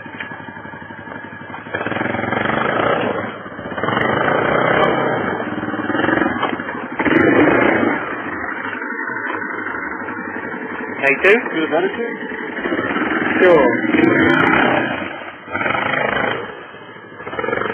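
An ATV engine revs and labours close by.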